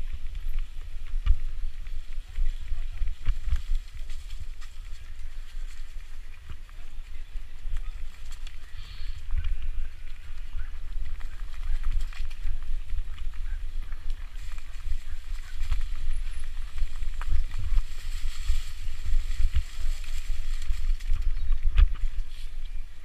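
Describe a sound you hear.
Bicycle tyres rattle and crunch over a rough dirt trail.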